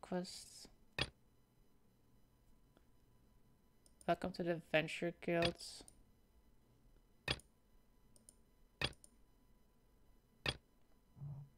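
Menu clicks sound sharply now and then.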